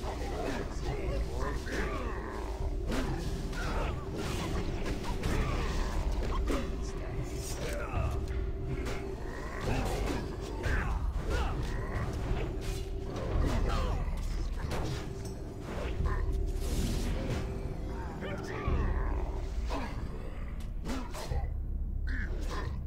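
Weapons strike and clang in quick, repeated bursts.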